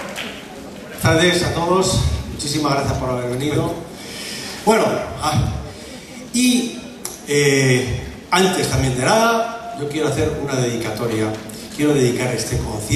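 A middle-aged man speaks calmly through a microphone in a large hall.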